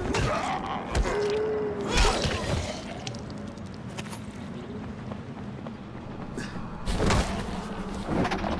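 A heavy kick thuds against a body.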